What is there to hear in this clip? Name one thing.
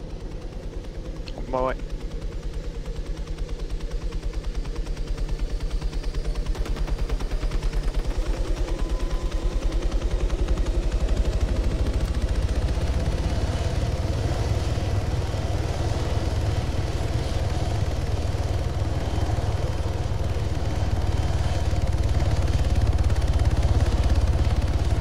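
A helicopter's rotor thumps in a fast, steady beat and grows louder.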